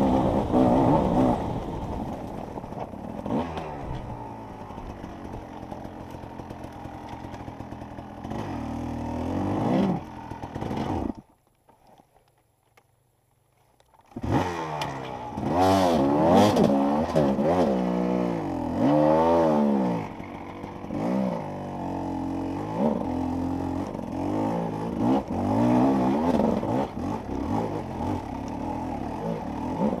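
A dirt bike engine revs hard and bogs down in quick bursts, close by.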